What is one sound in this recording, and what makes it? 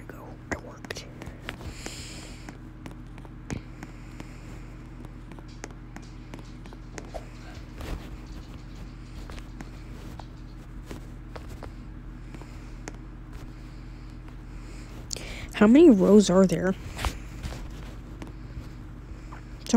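Game footsteps patter as a character runs.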